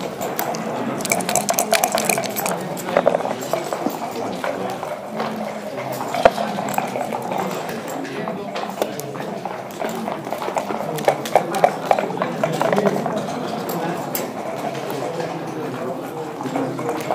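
Game pieces click and clack as a player moves them on a wooden board.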